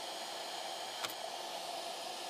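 A finger taps once on a touchscreen.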